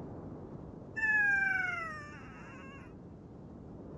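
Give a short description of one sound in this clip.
A crow caws loudly nearby.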